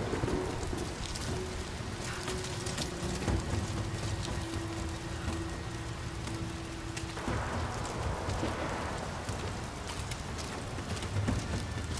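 Leaves rustle as someone pushes through bushes.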